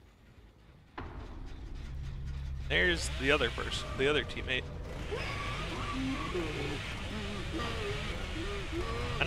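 A chainsaw engine revs and roars close by.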